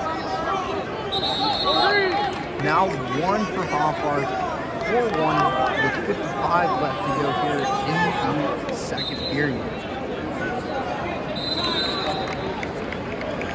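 Wrestlers' shoes squeak on the mat.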